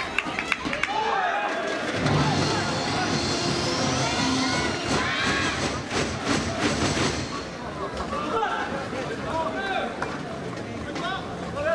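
A shuttlecock is struck sharply by rackets.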